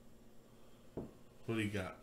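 A can taps down on a wooden table.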